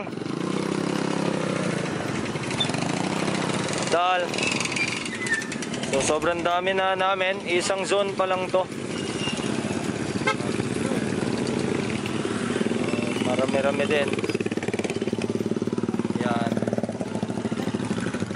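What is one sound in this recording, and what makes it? Small motorcycle engines hum and buzz as riders pass close by.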